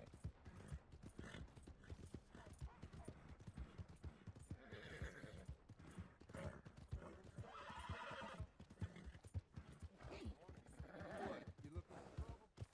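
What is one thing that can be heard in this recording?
Horse hooves thud steadily on dirt.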